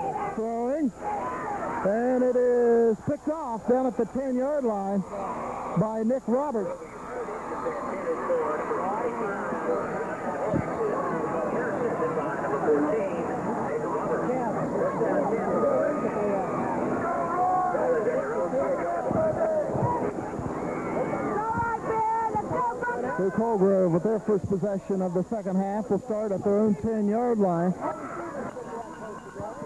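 A crowd of men and boys talk and shout nearby outdoors.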